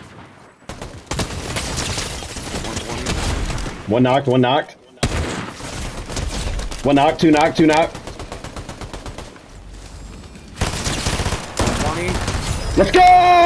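Automatic gunfire rattles in bursts in a video game.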